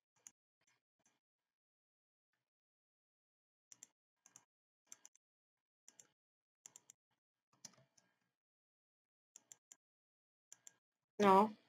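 Blocks are placed with soft, short thuds.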